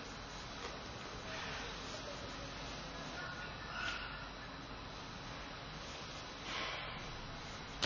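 Cloth rustles softly.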